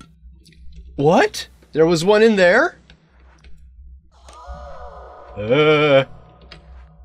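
A young man speaks loudly and excitedly into a close microphone.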